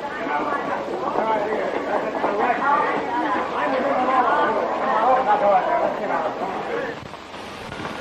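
A crowd of people chatter and shout excitedly.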